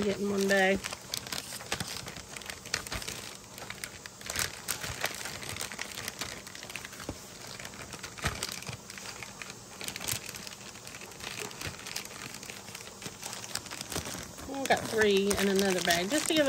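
Plastic freezer bags crinkle and slide across a metal counter as they are handled.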